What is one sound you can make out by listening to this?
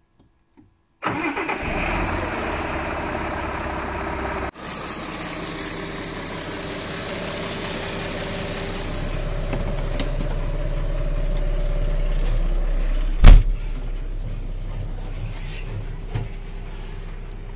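A farm tractor's diesel engine runs, heard from inside the cab.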